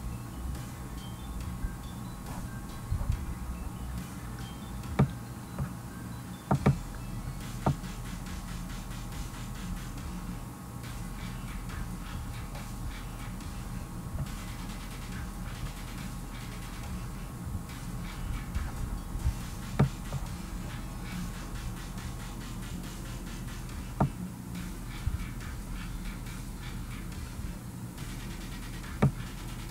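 A young man speaks quietly close to a microphone.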